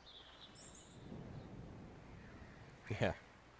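A man speaks quietly and close to a microphone.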